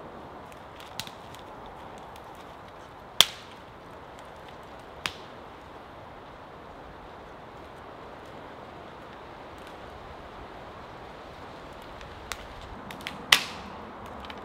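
Dry dead wood snaps sharply.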